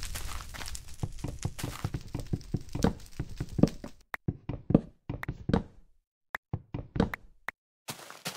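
Wood is struck over and over with quick, dull knocks.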